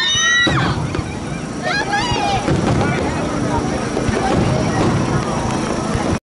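Fireworks pop and crackle overhead outdoors.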